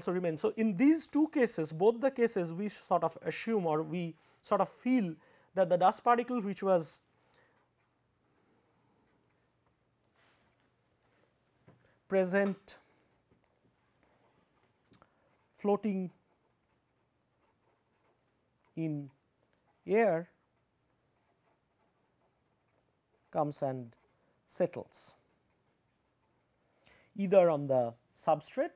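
A man speaks calmly and at a lecturing pace, close to a microphone, with long pauses.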